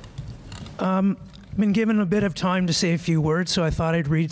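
A man speaks calmly into a microphone in a large hall.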